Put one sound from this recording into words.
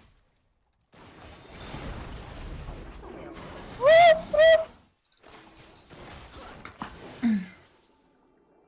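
Game spells and hits whoosh and crack in a fast fight.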